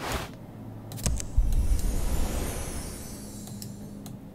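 Game sound effects rumble and whoosh.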